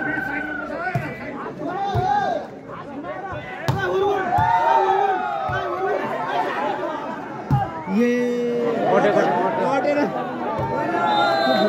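A ball thumps as players strike it.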